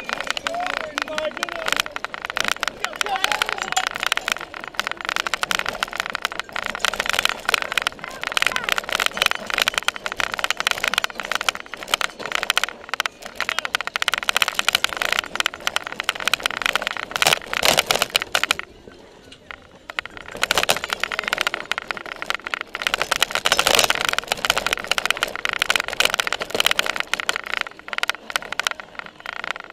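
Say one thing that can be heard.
A bicycle rattles and clatters over bumpy ground, heard up close.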